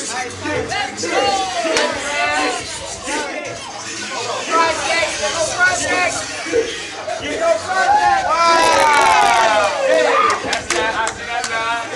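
A crowd of young men shouts and cheers loudly in a room that echoes.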